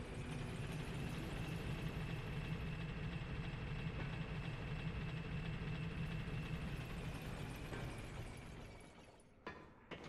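A heavy stone lift rumbles steadily as it descends.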